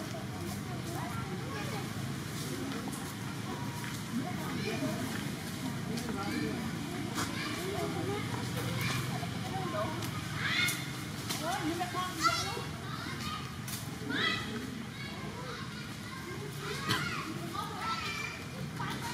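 A monkey munches on a piece of fruit close by.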